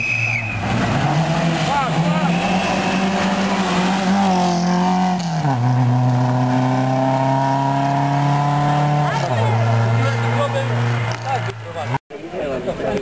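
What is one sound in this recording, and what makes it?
A rally car engine roars past at high revs, shifting gears and fading into the distance.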